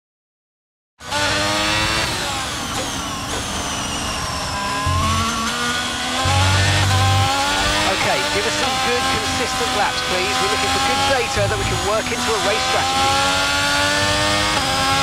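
A Formula One car engine revs high and shifts up through the gears.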